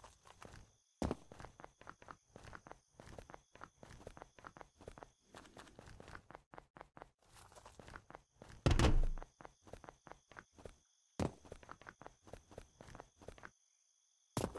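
Footsteps crunch quickly on the ground.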